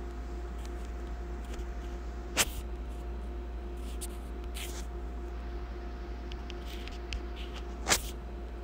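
Phone keyboard keys tick softly.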